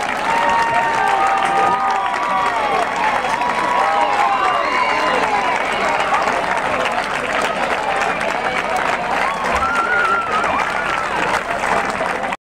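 A crowd of young women chatters and calls out excitedly outdoors.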